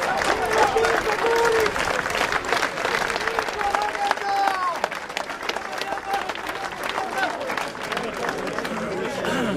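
A large crowd outdoors chants and shouts loudly.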